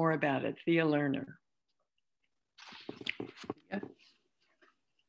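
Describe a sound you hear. An older woman speaks warmly over an online call.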